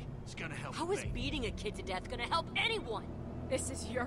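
A teenage girl shouts angrily.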